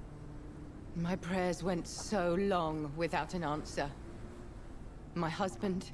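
A woman speaks softly and sorrowfully, close by.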